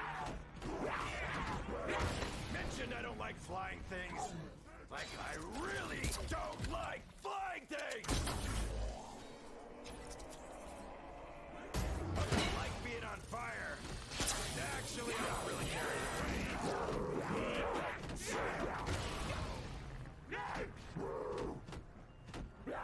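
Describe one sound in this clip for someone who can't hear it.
Zombies snarl and growl up close.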